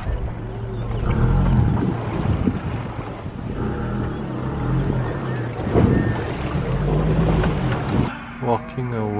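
Water splashes and churns against a vehicle driving through a stream.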